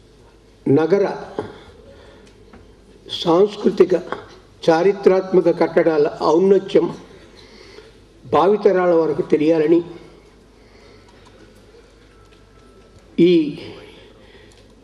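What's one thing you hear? An elderly man speaks slowly into a microphone, heard through loudspeakers in a large hall, with long pauses.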